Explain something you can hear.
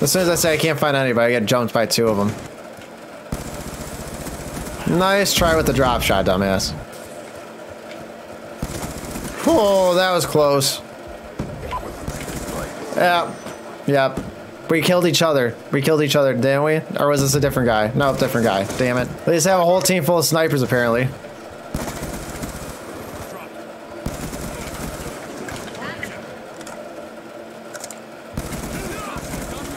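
Gunfire crackles from a video game.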